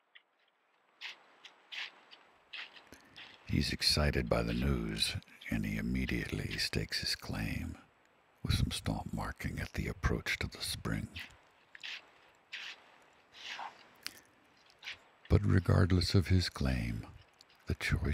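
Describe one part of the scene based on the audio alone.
Footsteps of a bear rustle and crunch through dry leaves on the ground.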